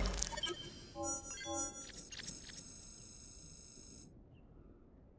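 Chiming game tones play and ring out.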